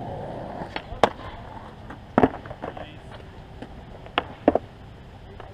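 A skateboard clacks and slaps down on concrete.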